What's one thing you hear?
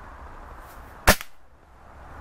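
A single gunshot cracks sharply outdoors.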